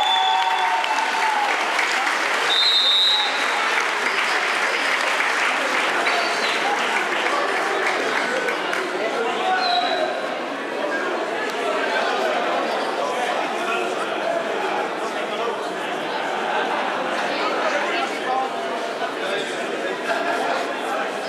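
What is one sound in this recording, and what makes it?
A crowd applauds steadily.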